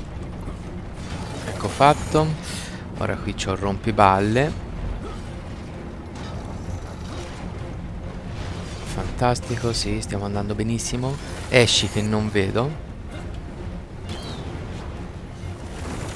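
Flaming arrows whoosh from a bow.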